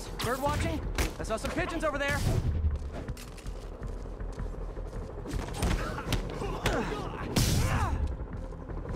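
Punches land with heavy thuds in a scuffle.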